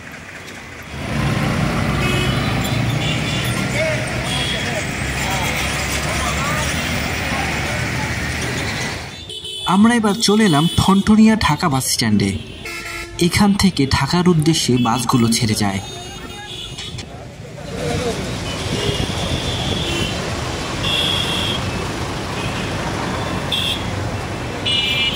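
Street traffic rumbles steadily outdoors as motor rickshaws and motorbikes pass close by.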